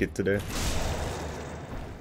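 A sword strikes flesh with a wet slash.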